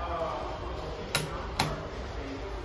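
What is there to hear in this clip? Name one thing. An elevator button clicks as it is pressed.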